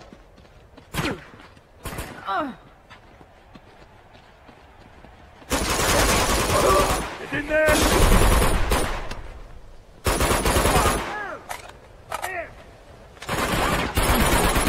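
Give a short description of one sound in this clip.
Gunfire rattles in loud bursts nearby.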